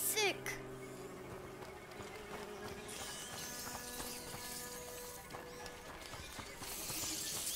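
Footsteps run on a dirt path.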